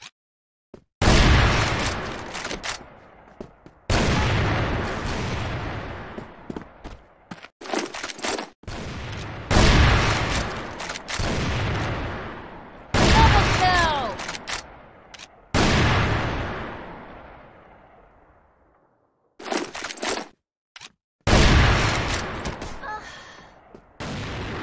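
Sniper rifle shots boom loudly and echo away.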